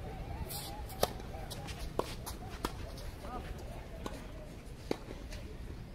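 Tennis rackets strike a ball in a short rally.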